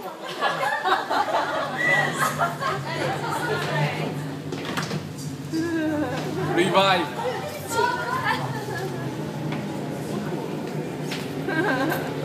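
A crowd of young people chatters and shouts in a large room.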